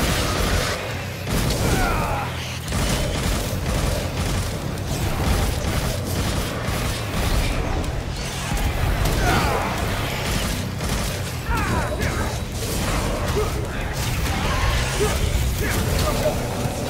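Sword slashes and fiery blasts crackle and boom in quick bursts.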